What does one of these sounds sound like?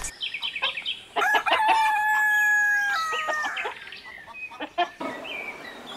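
Hens cluck.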